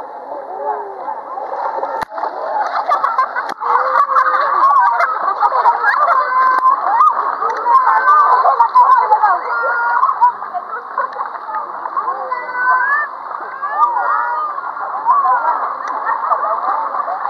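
Water splashes as children thrash in a pool.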